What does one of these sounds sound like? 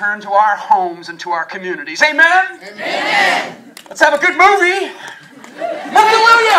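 A man preaches loudly and with fervour into a microphone.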